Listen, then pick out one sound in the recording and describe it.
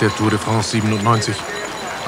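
A crowd of spectators cheers along the roadside.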